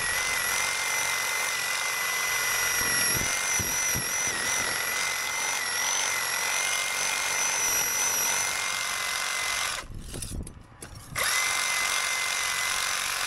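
A power tool whines loudly and steadily as it grinds into brick mortar, briefly stopping and starting again.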